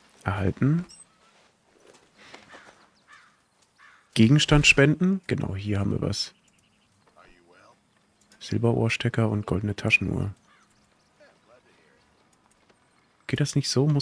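A man talks calmly and casually close to a microphone, in bursts with pauses.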